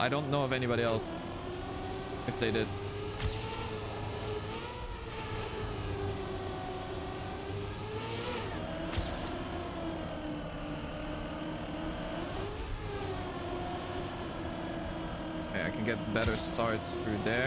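A racing car engine whines steadily, rising and falling in pitch.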